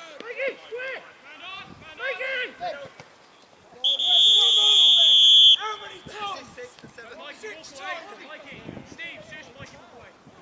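Players shout to each other across an open field.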